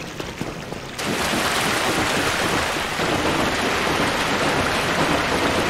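Water splashes loudly with each step.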